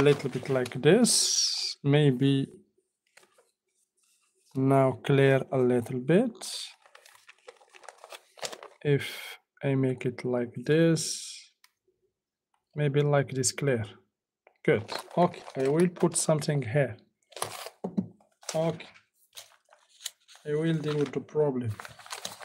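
A sheet of paper rustles as it is handled.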